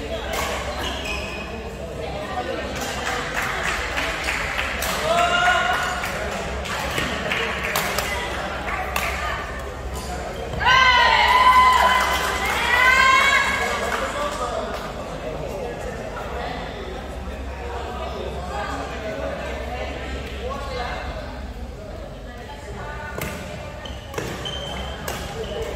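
Shuttlecocks are struck with sharp racket pops in a large echoing hall.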